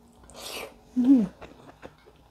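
A young woman hums briefly with her mouth closed.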